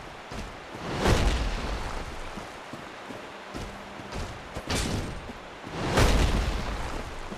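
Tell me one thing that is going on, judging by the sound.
Heavy blows thud hard in a fight.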